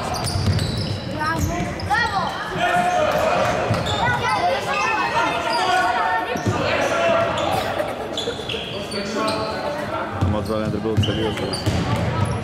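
A basketball thumps as it is dribbled on the court.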